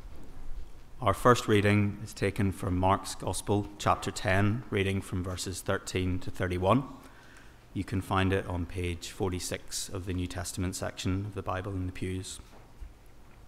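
A man reads aloud calmly through a microphone in a large echoing hall.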